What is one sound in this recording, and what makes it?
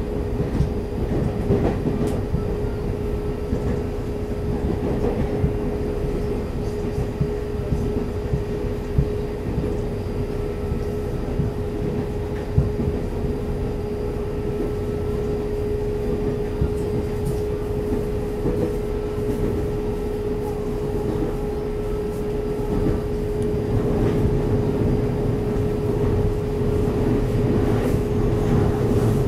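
An electric multiple-unit train rumbles along the track at speed, heard from inside the carriage.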